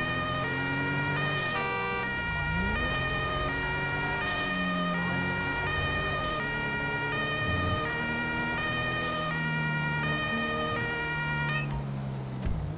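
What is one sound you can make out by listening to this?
A police siren wails with rapidly alternating tones, then stops.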